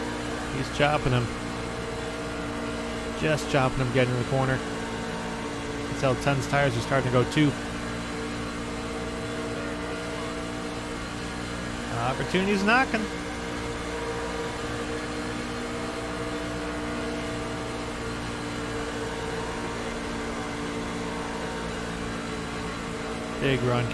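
A racing truck's V8 engine roars at steady full throttle.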